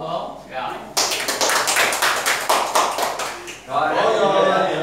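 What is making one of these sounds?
A group of people clap their hands in rhythm.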